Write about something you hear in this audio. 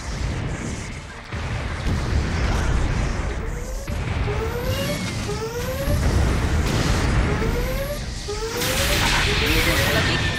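Heavy guns fire in repeated bursts.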